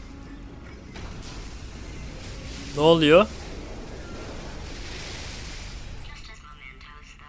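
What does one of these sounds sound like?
A wall crashes down and debris clatters and scatters.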